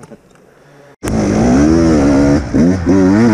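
A dirt bike engine roars loudly and revs as the rider sets off.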